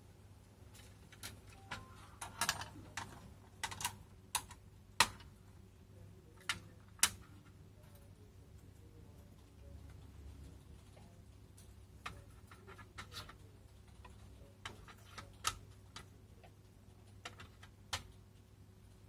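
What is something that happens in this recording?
Plastic parts click and clatter as they are fitted together by hand.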